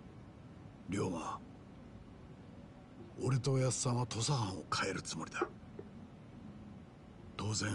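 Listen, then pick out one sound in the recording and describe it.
A man speaks earnestly in a deep voice.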